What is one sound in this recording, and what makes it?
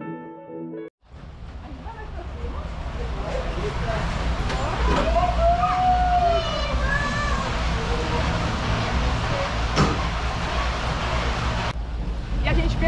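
Cable cars rumble and squeal through a station.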